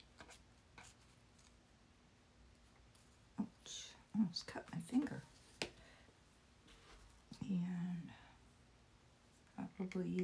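Hands brush and rustle a piece of fabric.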